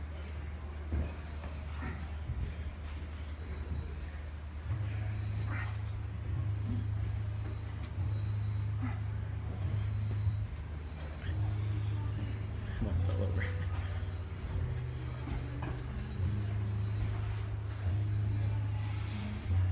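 A gym machine's cables whir through pulleys.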